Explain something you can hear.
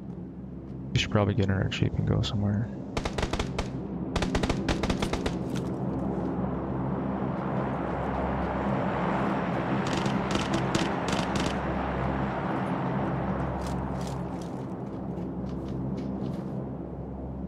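Footsteps thud quickly on the ground as someone runs.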